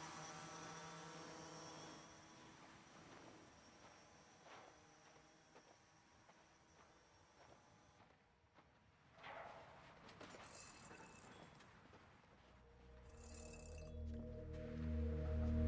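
Soft footsteps shuffle slowly.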